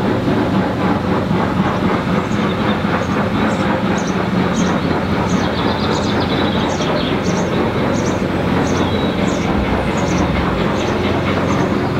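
Wind blows steadily outdoors, rustling leaves.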